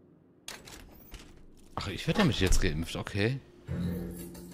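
An elevator door slides shut.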